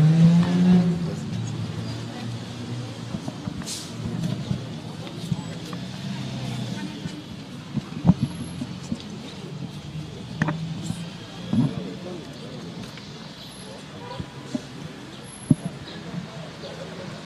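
A crowd murmurs outdoors in the background.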